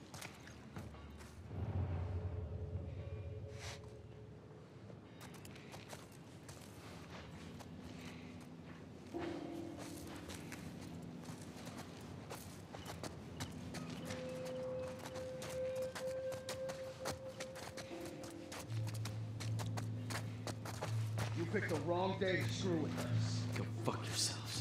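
Footsteps shuffle quietly over concrete and gravel.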